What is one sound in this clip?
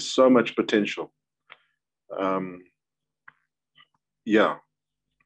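A middle-aged man speaks calmly in short bursts, heard through an online call.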